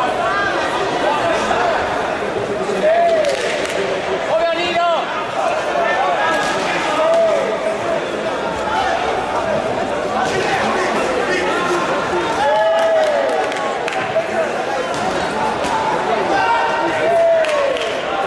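A crowd chatters and cheers loudly throughout a large echoing hall.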